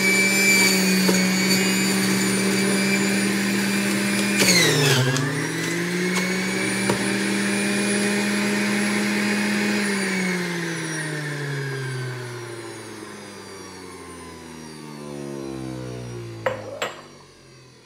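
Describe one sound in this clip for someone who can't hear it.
A juicer motor whirs loudly, then slowly winds down.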